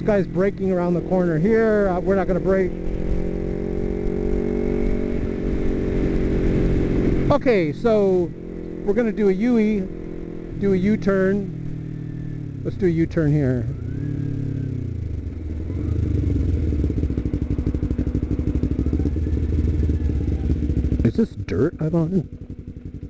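A motorcycle engine hums steadily, its pitch rising and falling with the throttle.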